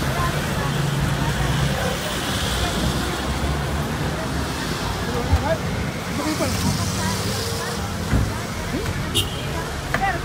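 Motorcycles and cars drive past on a street.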